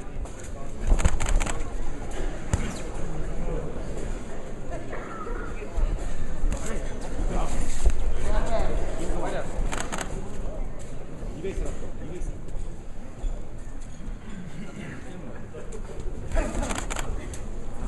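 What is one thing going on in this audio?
Gloves thud on a body in quick bursts.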